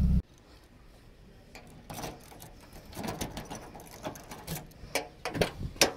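A key scrapes and clicks in a car door lock.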